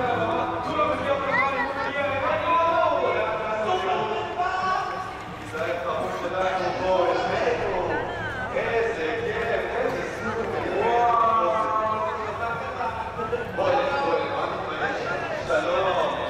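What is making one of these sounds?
A crowd of adult men and women chatter casually as they pass close by outdoors.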